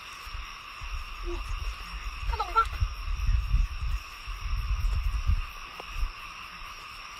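Hands squelch and slap in thick wet mud.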